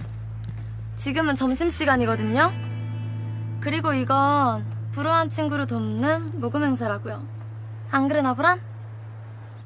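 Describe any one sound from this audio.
A young woman speaks with animation, close by.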